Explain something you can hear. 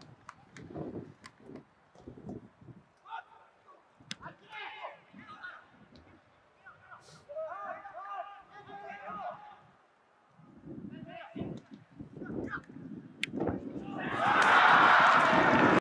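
Players shout to each other across an open field.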